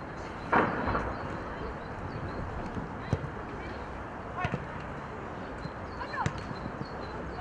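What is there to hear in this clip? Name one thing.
Players shout to each other across an open outdoor field.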